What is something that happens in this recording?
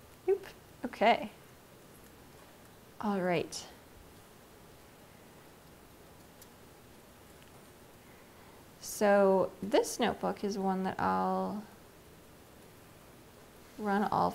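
A young woman speaks calmly into a microphone, in bursts with pauses.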